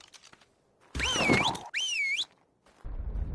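A large creature lets out shrill, rising cries.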